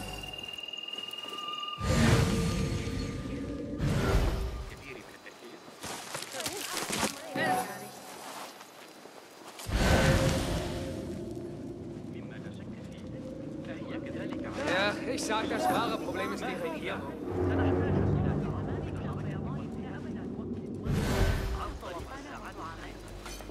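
Soft footsteps shuffle over dirt and stone.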